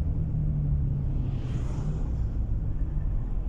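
A truck passes close by, with a brief rushing swell.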